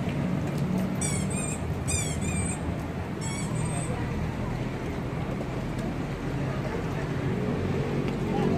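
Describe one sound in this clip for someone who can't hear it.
A crowd of people chatter in the background.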